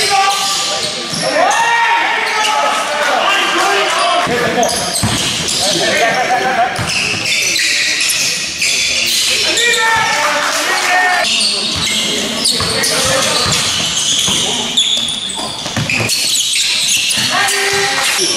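Young men shout and call out across the gym.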